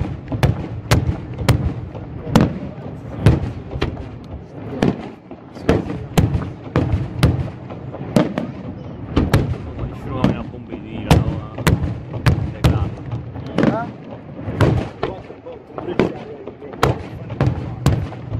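Fireworks burst with loud booms and sharp cracks, echoing outdoors.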